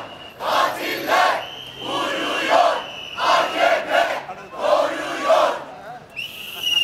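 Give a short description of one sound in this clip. A crowd of marchers chants slogans loudly in rhythmic bursts outdoors.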